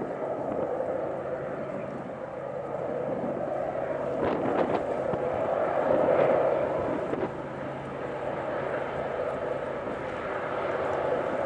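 Steel wheels clatter and squeal on the curved track.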